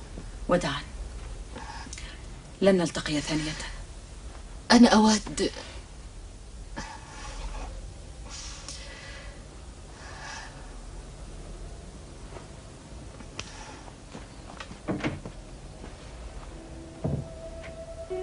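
A man speaks softly nearby.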